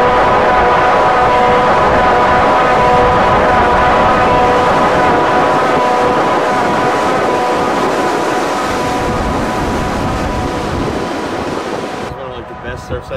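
Waves crash and roll onto the shore.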